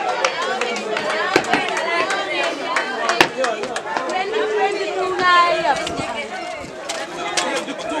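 A crowd murmurs and talks in the background.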